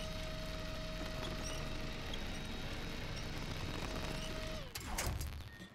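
A truck engine rumbles steadily, then cuts off.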